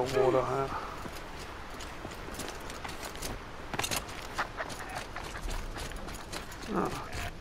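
Footsteps crunch over undergrowth.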